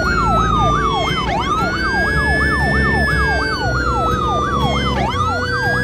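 A siren wails rapidly up and down.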